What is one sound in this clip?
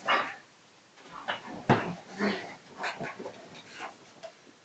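A young woman talks playfully to a dog nearby.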